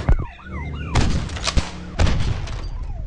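A shotgun fires.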